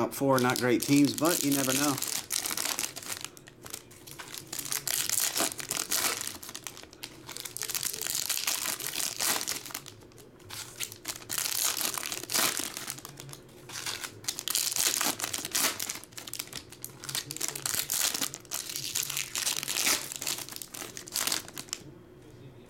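Foil card wrappers crinkle and rustle as they are torn open.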